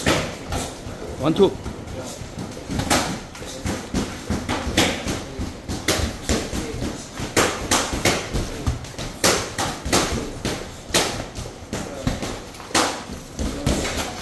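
Boxing gloves thud against bodies and gloves in quick bursts.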